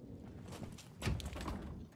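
A heavy metal door bangs open.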